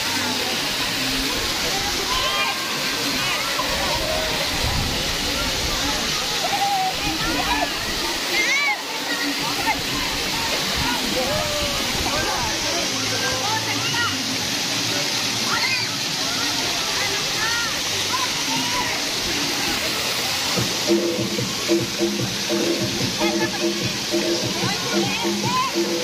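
Children splash about in the water.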